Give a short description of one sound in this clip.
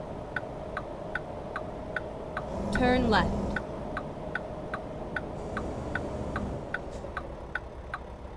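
A turn signal ticks rapidly.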